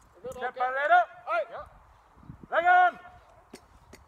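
A man shouts loudly outdoors.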